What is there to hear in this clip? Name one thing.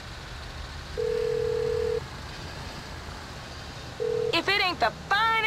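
A mobile phone beeps.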